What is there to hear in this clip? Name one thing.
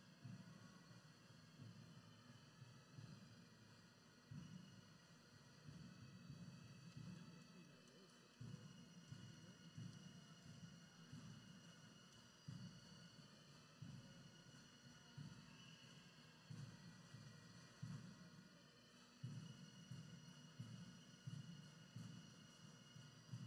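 Footsteps shuffle past on a hard floor.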